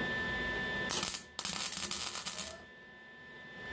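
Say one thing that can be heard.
A welding torch crackles and hisses in a short burst.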